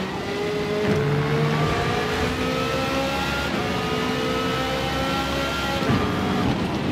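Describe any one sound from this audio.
A racing car engine roars at high revs, rising in pitch through the gears.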